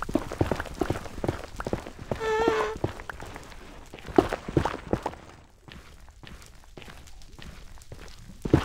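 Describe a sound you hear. A pickaxe chips at stone blocks with quick, crunching knocks.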